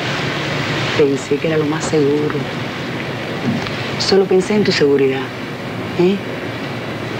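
A woman speaks softly and intimately close by.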